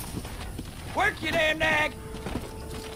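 A horse neighs loudly.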